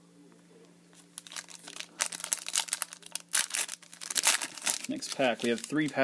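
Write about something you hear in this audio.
A foil wrapper crinkles and tears as it is ripped open.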